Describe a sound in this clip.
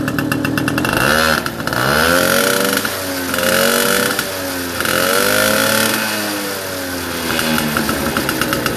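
A moped engine revs up and down several times.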